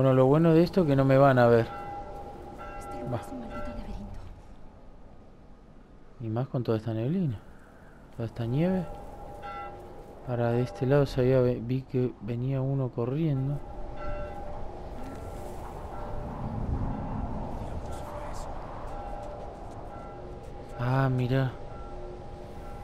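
A strong wind howls through a snowstorm.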